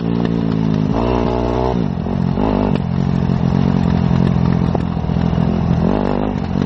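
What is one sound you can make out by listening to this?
A motorcycle engine runs loudly close by, its pitch rising and falling as it revs.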